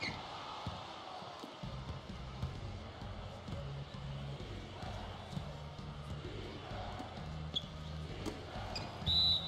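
A crowd murmurs and cheers in a large arena.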